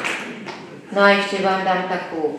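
An elderly woman speaks loudly into a microphone over loudspeakers.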